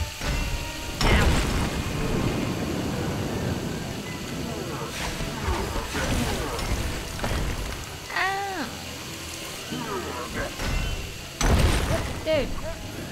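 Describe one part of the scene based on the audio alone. Heavy thuds pound the floor.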